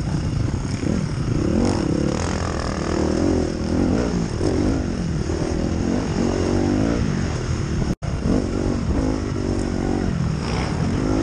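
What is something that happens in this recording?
A motorcycle engine roars and revs up and down close by.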